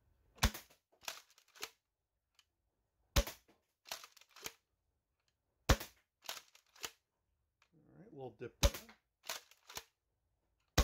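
A toy blaster's slide is racked with a plastic clack.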